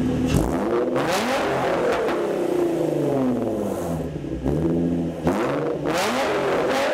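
Exhausts pop and crackle as the engine drops back.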